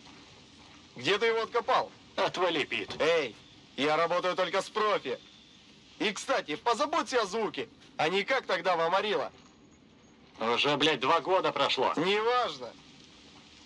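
A second man answers calmly.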